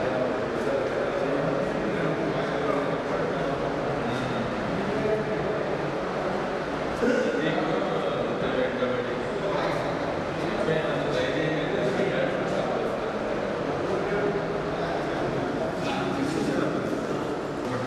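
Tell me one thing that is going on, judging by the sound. A murmur of several voices fills the room.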